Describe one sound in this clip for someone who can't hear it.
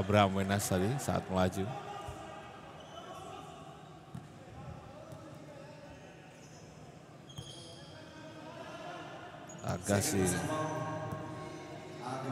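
A small crowd murmurs in a large echoing arena.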